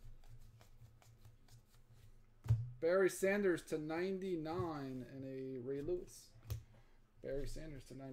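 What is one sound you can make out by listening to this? Trading cards slide and rustle against each other in hands.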